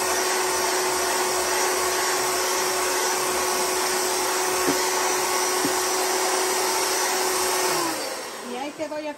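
An electric hand mixer whirs steadily, then winds down.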